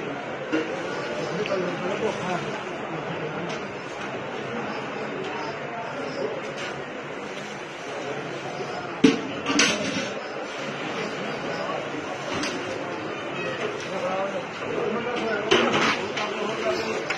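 A crowd of men murmurs and talks all around, outdoors.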